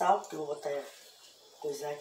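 Hands rustle food in a plastic bowl.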